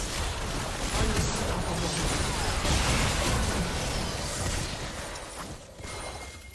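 Magic blasts and sword hits crackle and boom in a busy fight.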